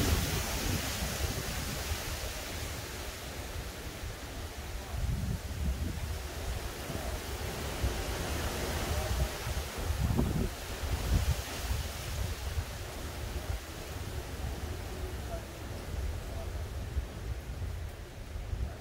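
Wind gusts outdoors, rumbling and rustling the tree leaves.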